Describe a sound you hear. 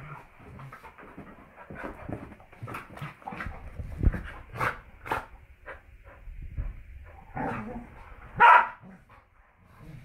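Dogs scuffle and play, paws scrabbling on a carpet.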